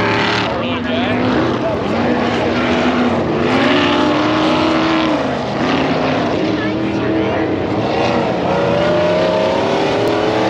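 Small electric model car motors whine and rev across a dirt track.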